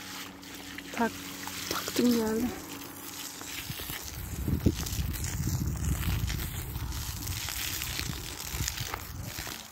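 Water gushes from a hose and splashes onto the ground.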